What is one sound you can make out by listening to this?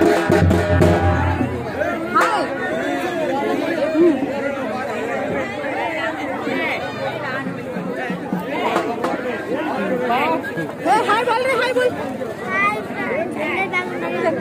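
A crowd of men and women talk over one another close by, outdoors.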